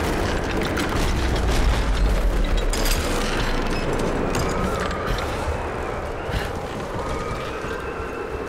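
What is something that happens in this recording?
Footsteps thud on creaking wooden planks.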